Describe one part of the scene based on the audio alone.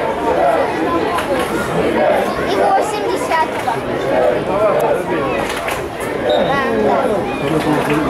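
Men shout to one another across an open field.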